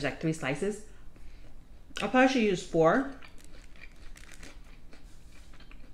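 A young woman chews crunchy food with wet, close mouth sounds.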